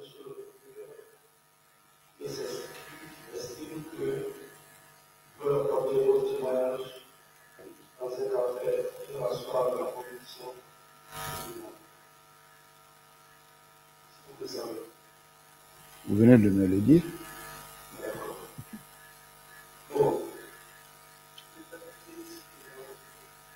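A man speaks with pauses into a microphone.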